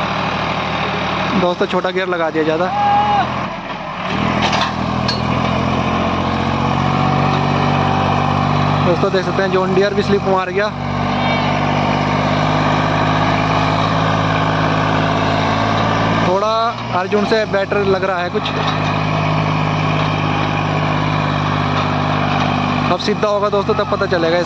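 A diesel tractor engine labours under load while pulling a disc harrow.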